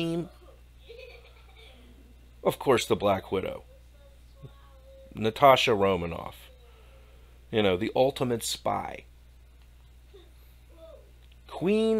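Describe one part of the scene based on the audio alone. A middle-aged man talks with animation into a close microphone, in short bursts with pauses.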